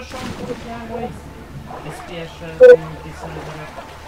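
Water splashes loudly as someone plunges in.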